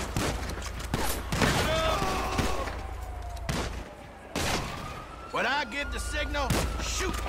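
Gunshots crack loudly several times.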